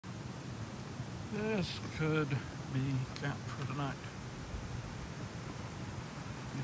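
Leaves rustle softly in a light breeze outdoors.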